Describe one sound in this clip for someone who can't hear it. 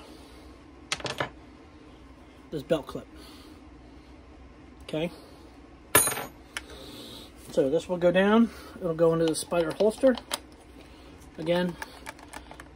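A plastic tool clicks and knocks as it is handled.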